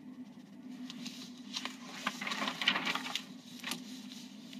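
A sheet of paper rustles as it is turned over.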